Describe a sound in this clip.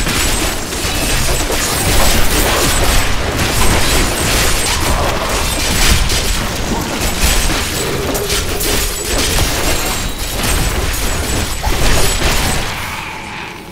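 Weapons clash and slash in a fast fight with monsters.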